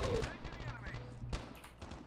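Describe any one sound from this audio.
Gunshots crack in a quick burst.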